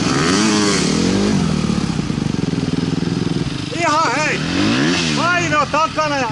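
Dirt bike engines rev loudly nearby, rising and falling.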